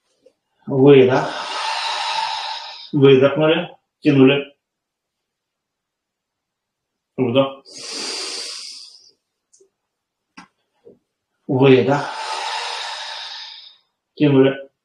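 A man breathes in and out deeply and audibly.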